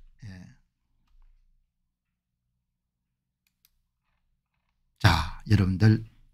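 An older man speaks calmly and close into a microphone.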